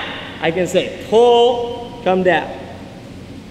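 A young man shouts excitedly in an echoing hall.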